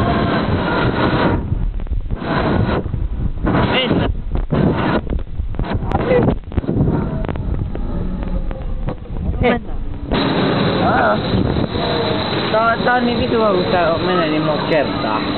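Wind rushes loudly past as a ride speeds along.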